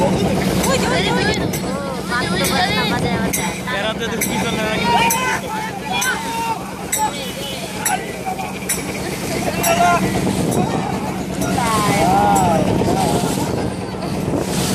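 Many young men shout and chant together in rhythm, out on open water.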